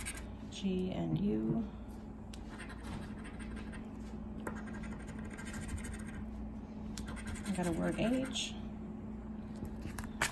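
A coin scratches across a paper card.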